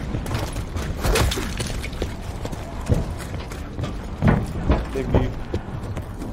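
Gunshots and blasts ring out in bursts.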